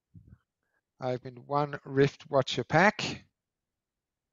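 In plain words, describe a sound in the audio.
A man speaks briefly with animation over an online call.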